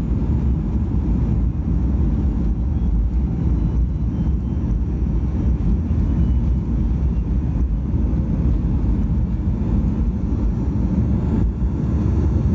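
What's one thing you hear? Wheels rumble over a runway.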